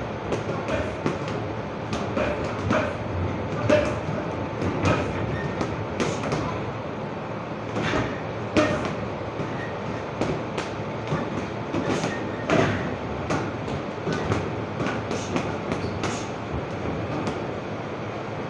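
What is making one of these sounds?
Punches thud against heavy punching bags in an echoing hall.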